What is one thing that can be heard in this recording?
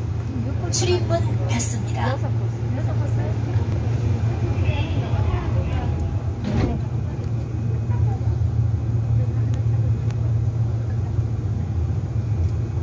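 A subway train rumbles steadily along the tracks.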